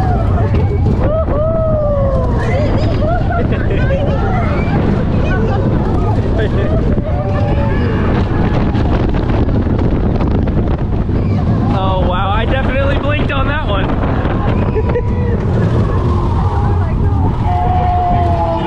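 Young riders scream and shout with excitement close by.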